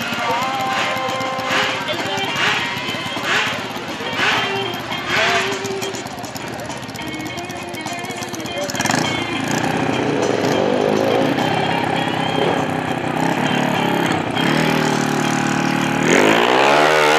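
A motorcycle engine revs loudly in short bursts.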